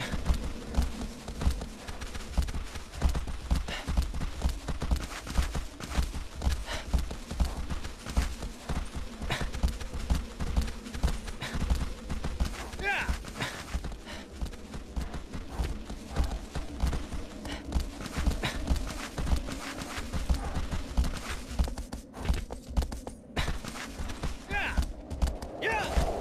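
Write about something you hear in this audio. A man talks calmly through a microphone.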